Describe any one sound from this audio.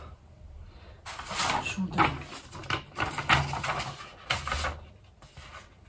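Paper rustles and crackles in a woman's hands.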